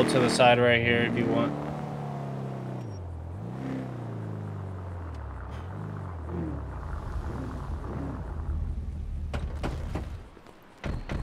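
A vehicle engine rumbles as it drives and slows to a stop.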